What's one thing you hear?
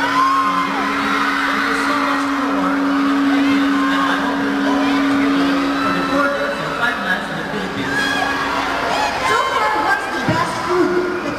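A young man speaks through a microphone over loudspeakers in a large hall.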